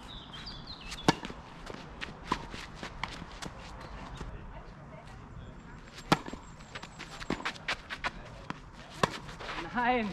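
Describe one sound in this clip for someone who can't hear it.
Tennis rackets strike a ball back and forth with sharp pops.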